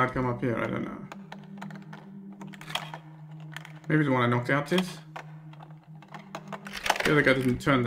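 A lockpick rattles in a small box lock.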